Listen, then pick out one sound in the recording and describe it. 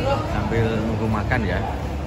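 Young men chat casually nearby.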